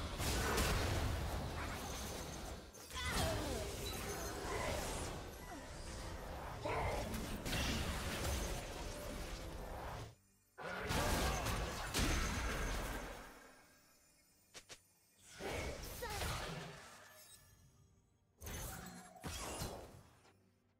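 Game spells whoosh and crackle as fantasy fighters battle.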